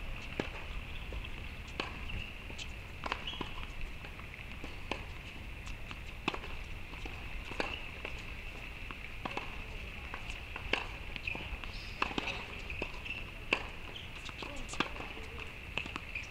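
Tennis balls pop off rackets at a distance, again and again.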